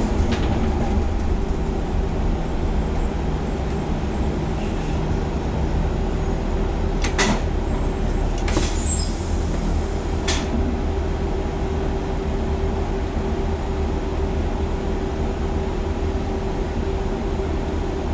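A bus engine idles low in slow traffic.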